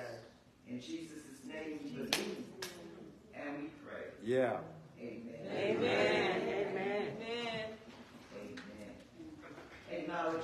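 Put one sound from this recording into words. A woman speaks with feeling through a microphone in an echoing hall.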